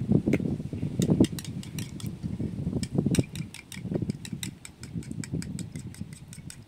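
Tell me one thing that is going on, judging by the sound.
A spoon clinks rapidly against a small cup.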